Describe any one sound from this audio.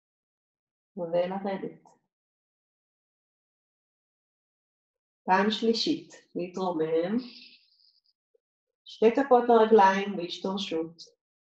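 A woman speaks calmly and clearly, close by, in short phrases with pauses.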